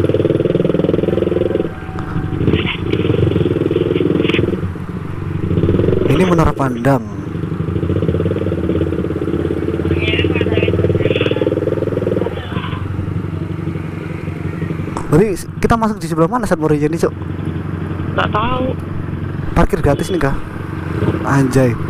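A motorcycle engine rumbles steadily as it rides slowly along a street.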